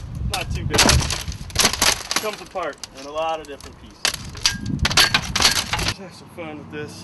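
A hammer strikes a metal bar with loud clanging blows.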